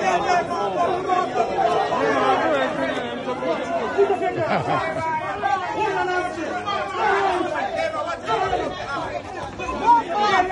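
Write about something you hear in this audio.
A crowd of men and women shouts and cheers loudly outdoors.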